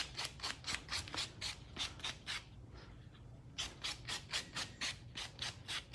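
A nail file rasps quickly back and forth against a nail.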